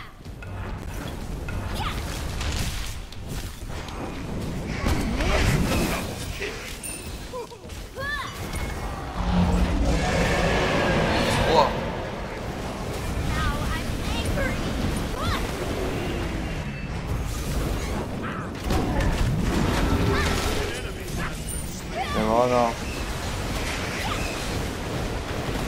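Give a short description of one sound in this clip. Magic spells whoosh and blast in a game battle.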